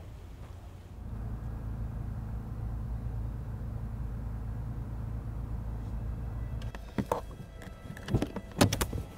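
A car engine hums low, heard from inside the car.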